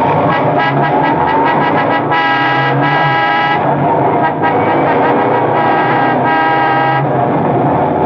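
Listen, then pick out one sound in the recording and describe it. A car horn honks repeatedly, in short beeps and long blasts.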